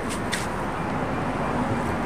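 A paintbrush strokes softly against concrete.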